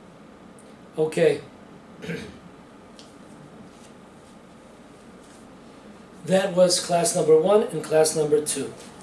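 An elderly man speaks calmly and close by, in short phrases.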